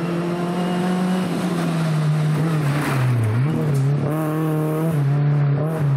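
Gravel sprays and crunches under a rally car's tyres.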